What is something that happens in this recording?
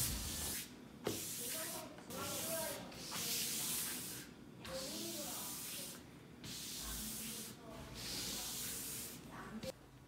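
A block rubs back and forth over leather in quick strokes.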